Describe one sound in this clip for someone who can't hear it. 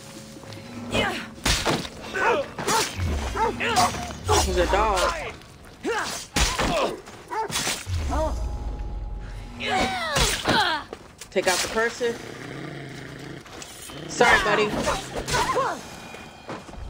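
Blades slash and strike in a fight.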